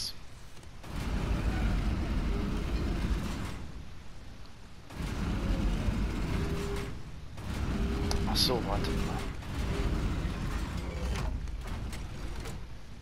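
A heavy stone mechanism grinds and rumbles as it turns.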